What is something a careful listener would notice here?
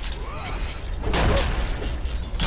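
Heavy blows land with loud crunching impacts.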